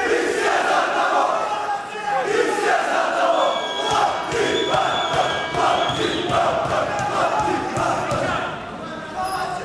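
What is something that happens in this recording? A man speaks loudly and firmly in a large echoing hall.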